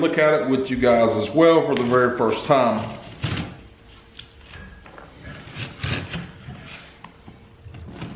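A knife slices through packing tape on a cardboard box.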